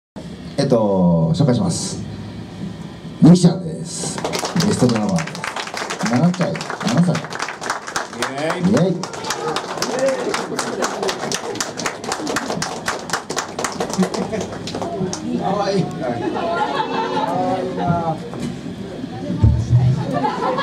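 A live rock band plays loudly with electric guitars.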